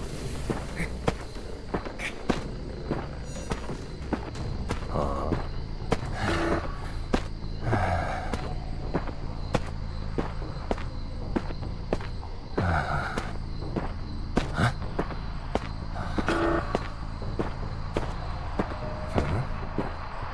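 Footsteps patter quickly and steadily over hard ground.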